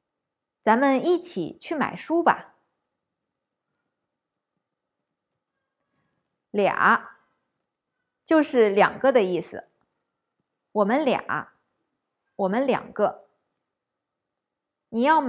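A woman speaks clearly and slowly into a close microphone, pausing between short phrases.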